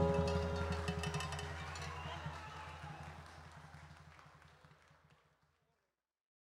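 A live band plays music that slowly fades out.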